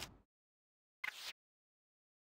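A short whoosh sounds as a menu opens.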